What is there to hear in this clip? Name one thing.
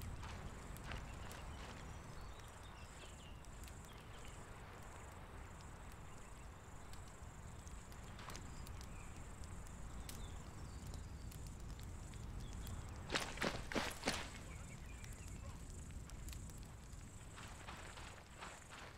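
Footsteps crunch on dry gravel at a steady walking pace.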